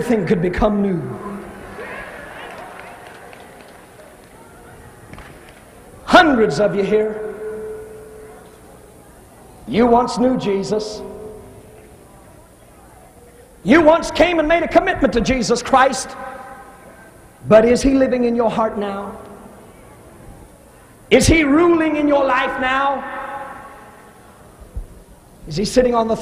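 A man preaches passionately through a microphone, in bursts with pauses, in a large echoing hall.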